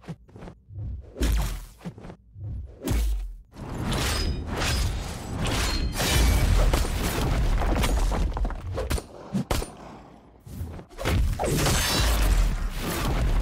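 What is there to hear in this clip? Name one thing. Punches and blows thud and crash in a fight.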